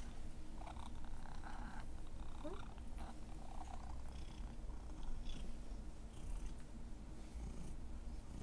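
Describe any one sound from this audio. Hands rub a cat's fur with a soft rustling.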